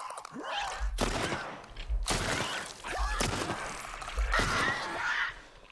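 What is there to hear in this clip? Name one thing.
A pistol fires several loud shots.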